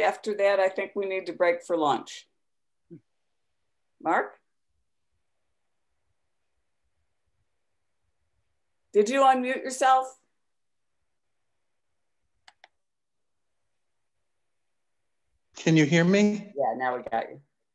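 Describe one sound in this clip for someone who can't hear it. A woman speaks calmly in bursts through an online call, with pauses between.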